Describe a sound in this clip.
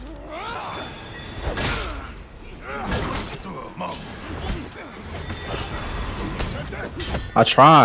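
Swords clash and clang.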